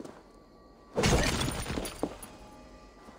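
A heavy thud sounds as someone lands after jumping down.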